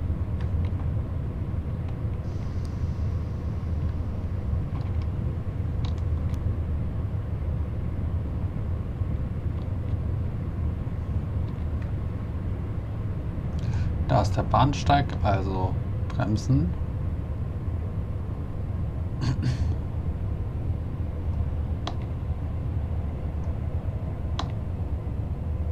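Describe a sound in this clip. An electric multiple-unit train rolls along the rails with a low rumble.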